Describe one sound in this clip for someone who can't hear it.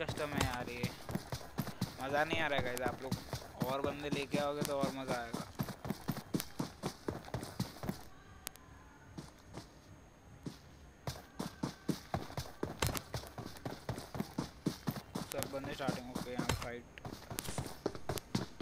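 Footsteps thud quickly and steadily over grass and dirt.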